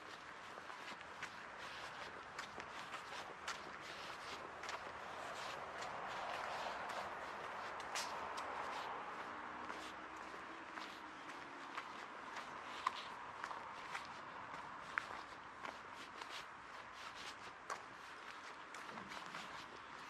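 Footsteps tap steadily on a paved path.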